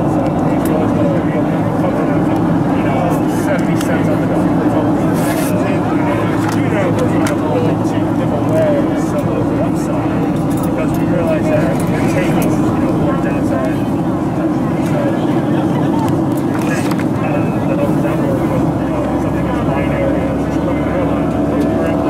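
A steady low roar of an aircraft cabin fills the background.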